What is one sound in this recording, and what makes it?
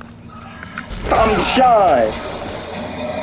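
A man cries out in pain nearby.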